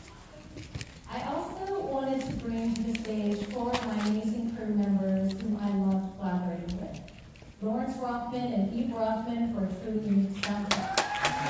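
A woman speaks calmly through a microphone and loudspeakers in a large hall.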